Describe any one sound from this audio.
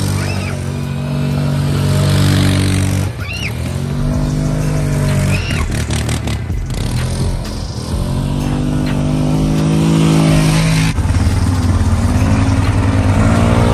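An all-terrain vehicle engine revs up and down as it drives around close by.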